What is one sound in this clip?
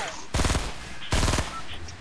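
A rifle fires a burst of shots.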